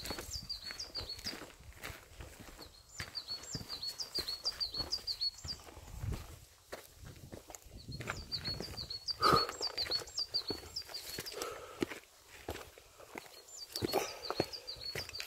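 Footsteps crunch on a dry, gritty dirt trail.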